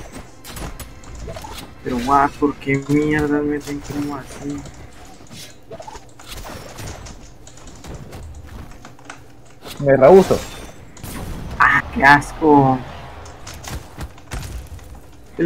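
Weapons swish and strike with quick, sharp hits.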